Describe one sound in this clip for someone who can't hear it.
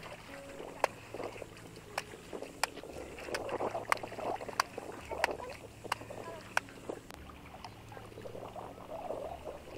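Water splashes and sloshes in a metal basin as hands scrub.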